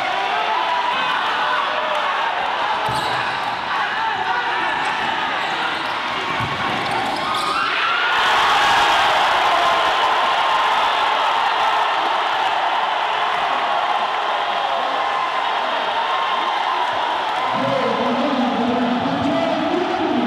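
A large indoor crowd cheers and chants in an echoing hall.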